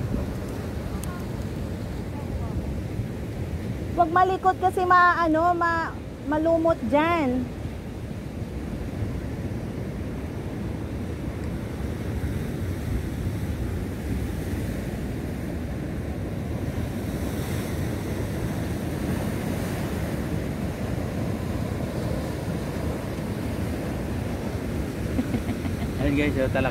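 Waves crash and wash against rocks nearby.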